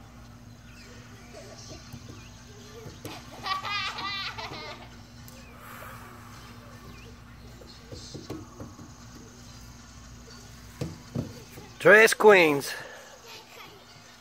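Girls laugh and chatter nearby.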